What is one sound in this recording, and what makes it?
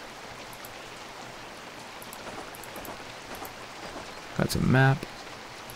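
Light footsteps tap along a dirt path.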